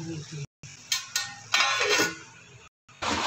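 A metal plate clinks and scrapes against a pot.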